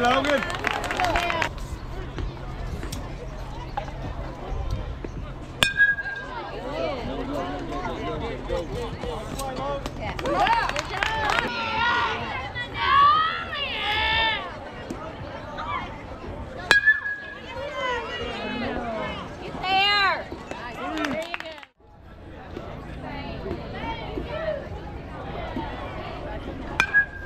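Young girls cheer and shout from a distance outdoors.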